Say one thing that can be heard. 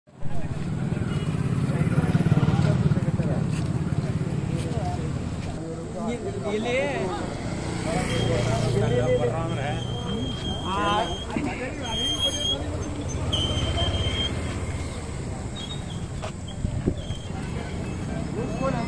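A crowd of men talk outdoors.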